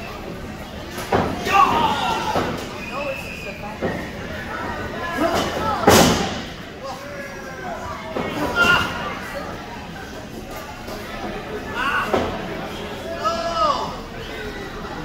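Men in the crowd shout loudly now and then.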